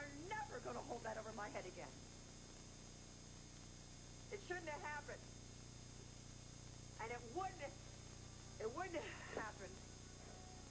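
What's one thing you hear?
A woman speaks tensely and emotionally, close by.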